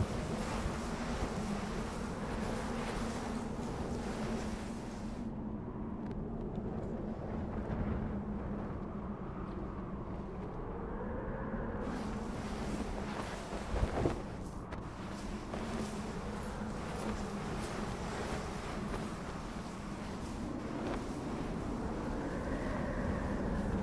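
Footsteps shuffle softly through sand.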